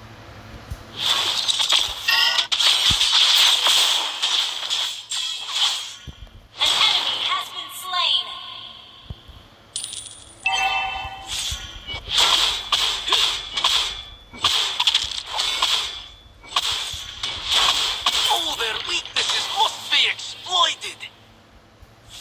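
Magic blasts whoosh and crackle in quick bursts.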